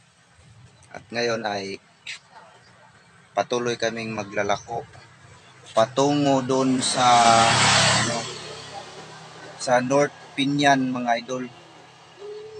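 A young man speaks close to the microphone in short bursts.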